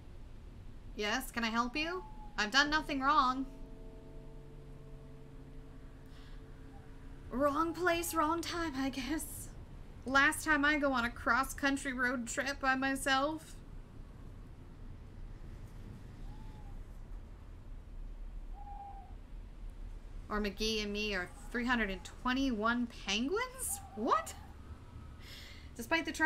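A young woman talks with animation through a close microphone.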